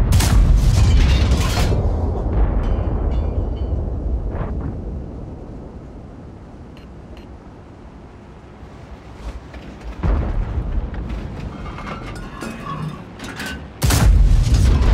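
A tank cannon fires with a loud, heavy boom.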